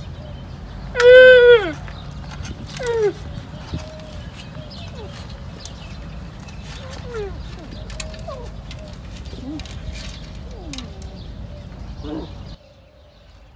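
A young camel bleats loudly up close.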